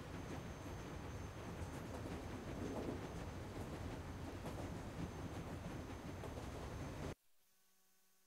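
A vehicle rumbles steadily along, then cuts off abruptly.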